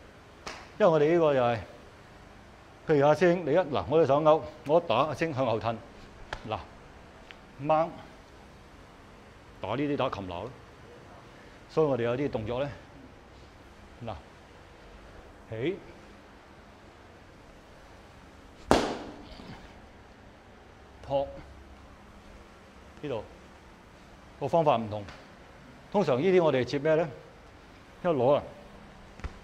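A man speaks calmly nearby, explaining in short bursts.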